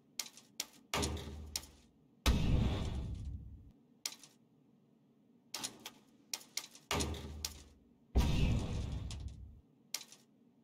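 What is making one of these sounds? A game upgrade sounds with a deep whoosh.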